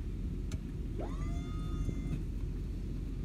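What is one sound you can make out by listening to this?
A hydraulic lift whines as it raises a load.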